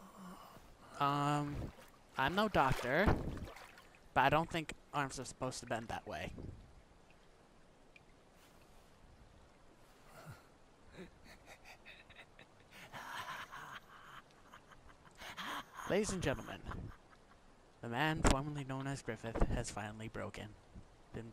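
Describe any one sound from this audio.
A young man speaks in a strained, breathless voice, close by.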